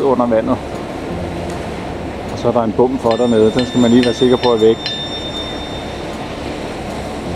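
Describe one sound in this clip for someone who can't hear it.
A boat engine rumbles steadily nearby.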